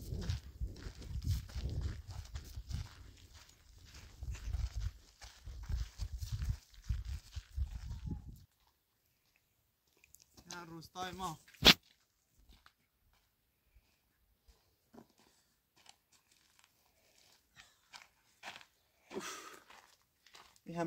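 Footsteps crunch on a gravel track.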